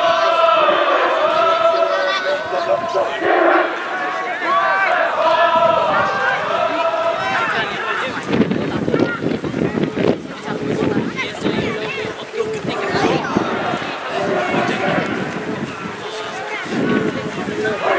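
Young women shout to each other across an open field.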